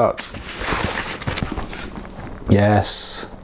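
A cardboard box rustles and flaps as it is opened.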